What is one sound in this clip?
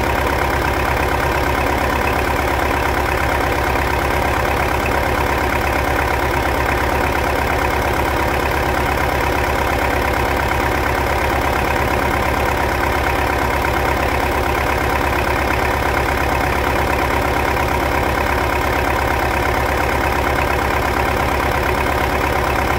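A diesel tractor engine idles loudly and steadily close by.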